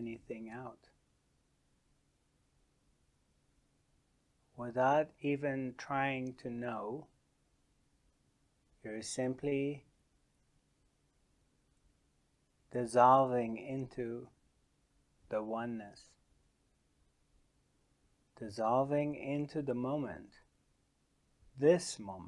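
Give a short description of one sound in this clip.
A middle-aged man speaks slowly and calmly into a close microphone, with long pauses.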